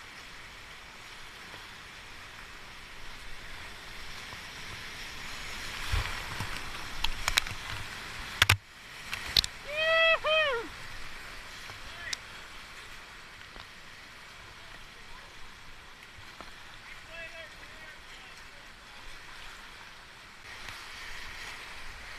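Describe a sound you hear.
A paddle splashes into the water.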